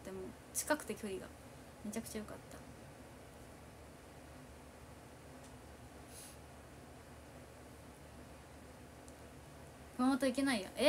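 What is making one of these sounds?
A young woman talks casually and softly, close to a microphone.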